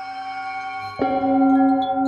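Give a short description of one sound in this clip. A singing bowl is struck once, sharply.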